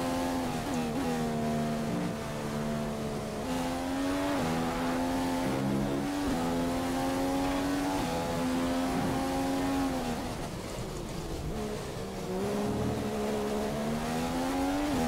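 A racing car engine screams at high revs, rising through the gears and dropping as it shifts down.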